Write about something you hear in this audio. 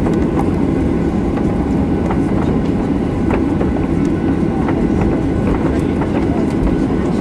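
An aircraft cabin rattles and clicks as the plane taxis over the ground.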